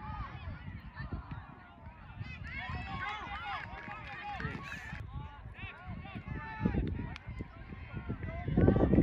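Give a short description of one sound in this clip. Young players and spectators shout and call out across an open field.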